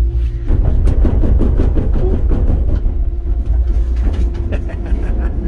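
Train wheels clatter rapidly over the rails.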